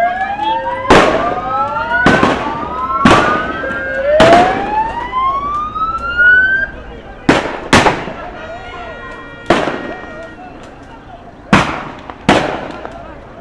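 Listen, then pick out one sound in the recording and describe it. Loud shots ring out one after another and echo off buildings outdoors.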